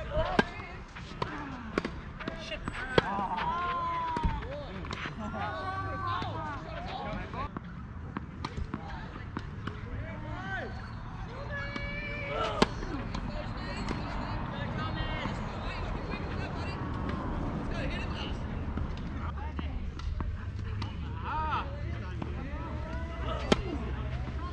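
A tennis ball is struck with a racket again and again outdoors.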